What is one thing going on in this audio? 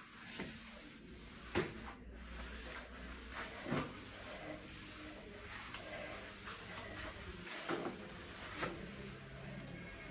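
A mop swishes and scrubs across a floor.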